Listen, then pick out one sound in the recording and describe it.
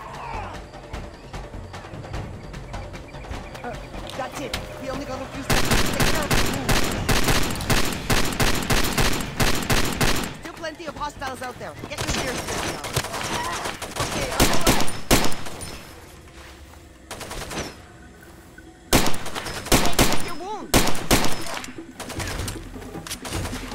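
A young woman talks into a close microphone with animation.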